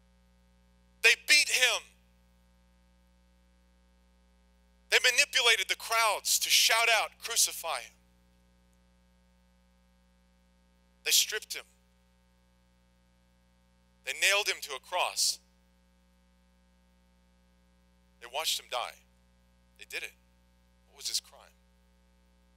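A man speaks slowly and earnestly through a microphone, with long pauses.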